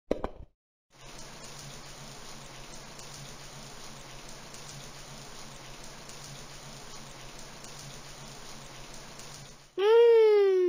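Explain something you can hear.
Water sprays steadily from a shower.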